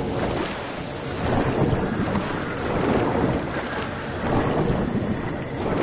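A creature splashes and swims through water.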